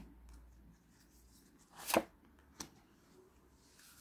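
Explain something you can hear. Cards are laid down with soft taps on a table.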